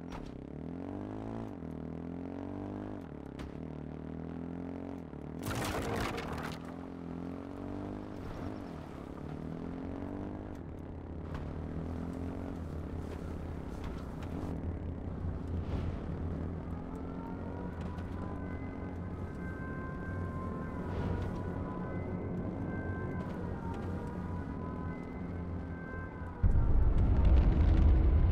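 A quad bike engine revs and drones steadily, rising and falling in pitch.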